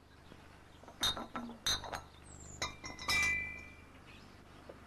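Glass milk bottles clink as they are set down.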